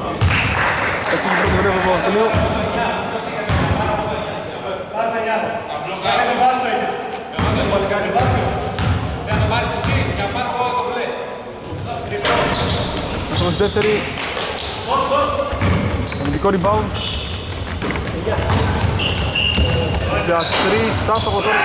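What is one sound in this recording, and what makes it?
Men shout and call out to each other during play.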